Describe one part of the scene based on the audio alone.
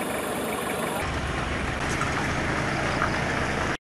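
A pickup truck engine rumbles as it drives slowly.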